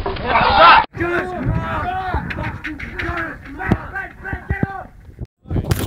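Young men shout and talk excitedly outdoors.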